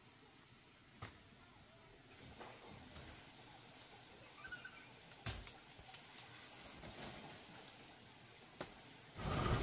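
Leaves and twigs snap off a tree close by.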